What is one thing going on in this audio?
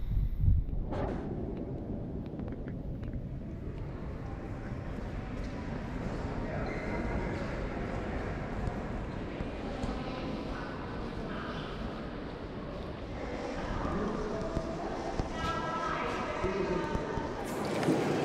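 Visitors murmur and chatter in a large echoing hall.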